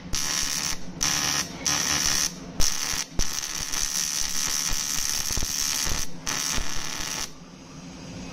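A welding arc crackles and hisses in short bursts.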